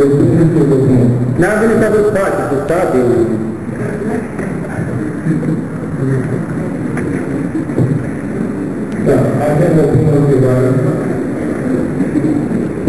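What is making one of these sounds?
A man chants a prayer in a deep voice, echoing in a large hall.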